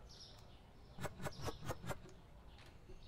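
Plastic bottles clack one after another as they are set on a shelf.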